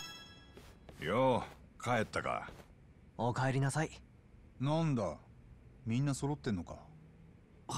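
A man speaks casually.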